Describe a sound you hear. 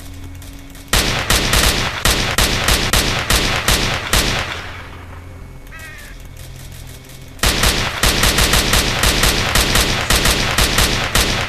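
An automatic rifle fires long, rapid bursts.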